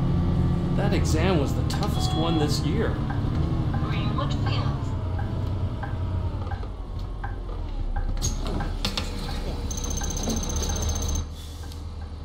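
A bus engine idles low as the bus slows to a stop.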